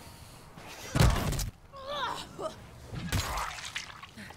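A heavy blunt weapon thuds into a body with wet, squelching hits.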